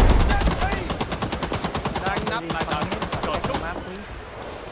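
A rifle fires in rapid bursts nearby.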